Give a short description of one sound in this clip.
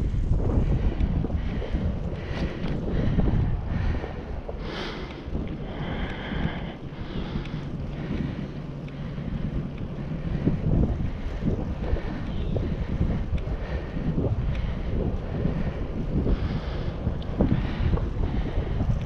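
Bicycle tyres roll over asphalt.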